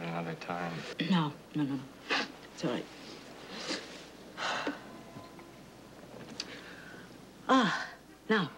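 A woman sobs and cries.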